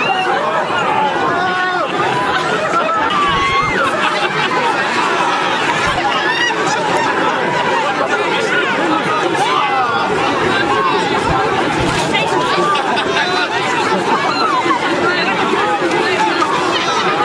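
A large crowd of men and women chatters and shouts loudly outdoors.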